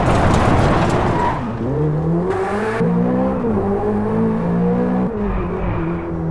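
A sports car engine roars and revs up and down through the gears.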